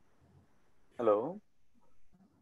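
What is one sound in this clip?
A second man speaks briefly over an online call.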